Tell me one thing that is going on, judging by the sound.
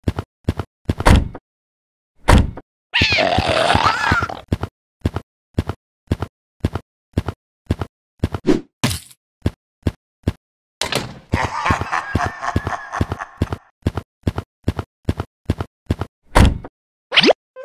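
Footsteps tap steadily across a wooden floor.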